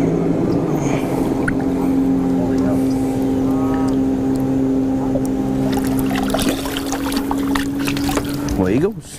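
An electric boat motor hums steadily, then winds down.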